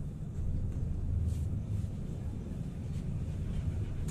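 Another tram passes close by outside.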